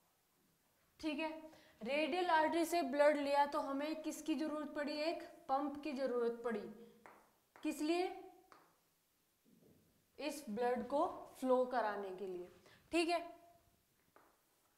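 A young woman speaks clearly and calmly, close by.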